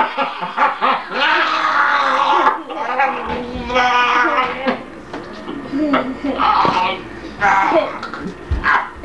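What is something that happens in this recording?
A middle-aged man groans and moans loudly up close.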